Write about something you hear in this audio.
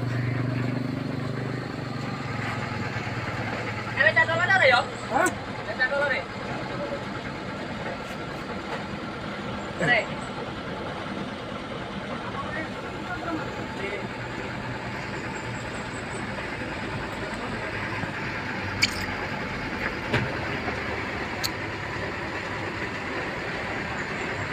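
A truck engine rumbles at idle.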